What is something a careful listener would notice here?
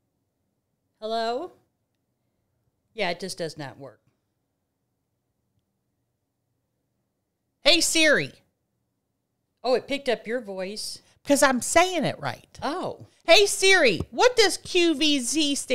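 A middle-aged woman speaks into a close microphone with animation.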